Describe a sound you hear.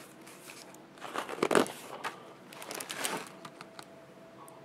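A paper page of a book turns with a soft rustle.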